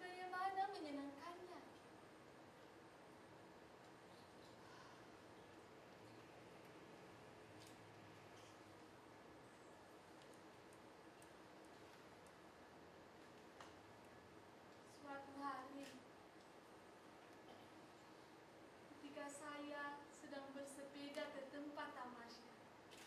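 A woman sings in a high voice, heard in a reverberant hall.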